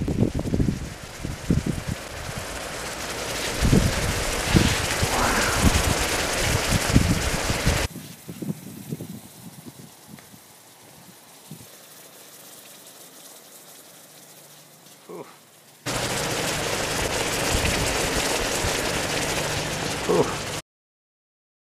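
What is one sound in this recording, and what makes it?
Hot liquid sizzles and hisses loudly in a pan.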